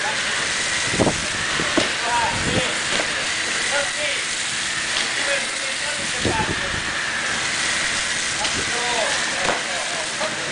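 Charred debris knocks and clatters as it is pulled apart.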